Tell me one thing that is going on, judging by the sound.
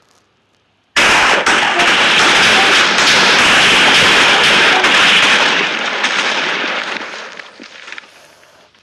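A loud explosion booms and rumbles, then slowly dies away.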